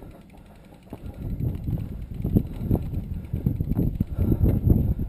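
A mountain bike rattles as it is pushed uphill.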